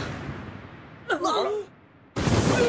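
A young man cries out in alarm.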